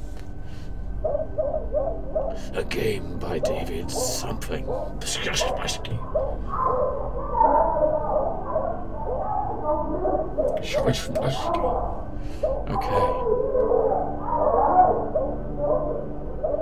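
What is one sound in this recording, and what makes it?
A man talks steadily into a close microphone.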